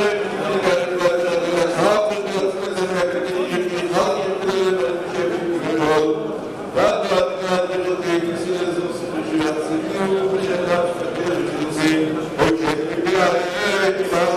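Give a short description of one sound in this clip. A crowd of men sings together in a large echoing hall.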